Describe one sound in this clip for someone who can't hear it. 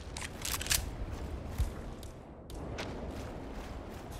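Legs splash while wading through shallow water.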